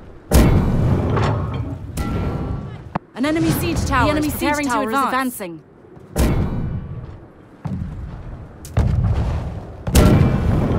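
A heavy cannon fires with deep, booming blasts again and again.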